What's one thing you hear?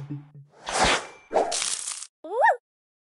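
Game pieces burst with a whooshing sound effect.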